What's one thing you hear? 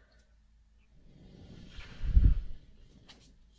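A young woman blows a puff of breath right into the microphone.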